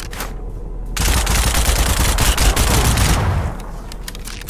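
An explosion booms and roars close by.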